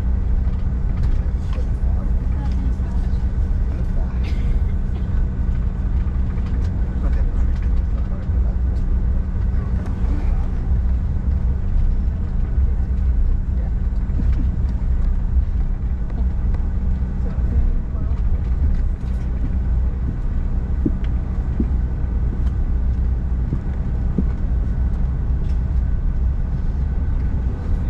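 An airliner's jet engines drone loudly and steadily inside the cabin as the plane taxis.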